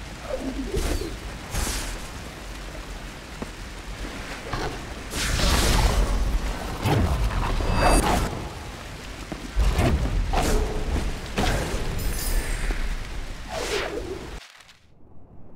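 Game sound effects whoosh and burst as a small character dashes and fights.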